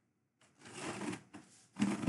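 A hand brushes against a cardboard box.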